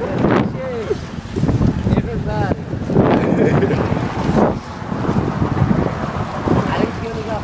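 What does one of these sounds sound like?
Water laps against rocks.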